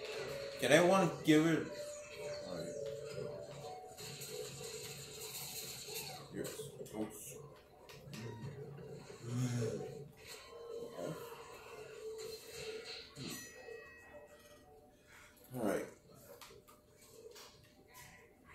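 Video game music and sound effects play from a television's speakers.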